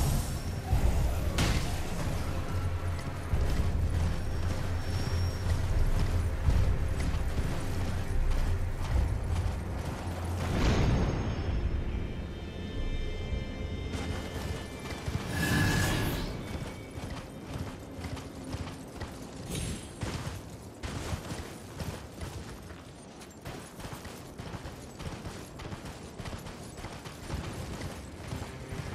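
Hooves of a galloping horse thud rapidly on snowy ground.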